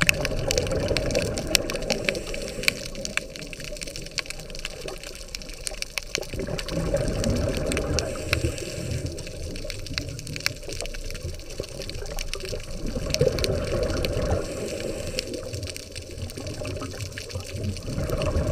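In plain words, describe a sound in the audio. Water rumbles and swirls in a low, muffled wash underwater.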